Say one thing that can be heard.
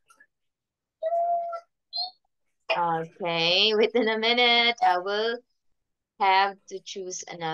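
A young woman speaks in a lively, sing-song voice over an online call.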